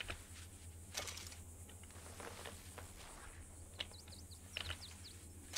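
A person rustles and picks at dry plants close by.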